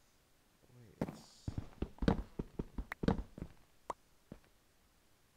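Stone blocks crunch and knock as they are struck.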